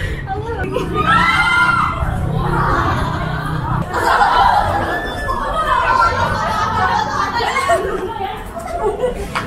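Young women shriek in fright close by.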